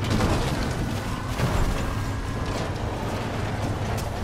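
A small off-road buggy's engine rumbles as it drives over rough ground.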